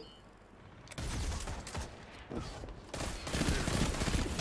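Gunfire crackles.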